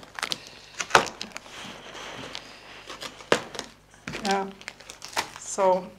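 A knife clicks and scrapes against a cardboard box.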